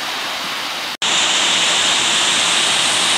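A waterfall pours with a steady roar.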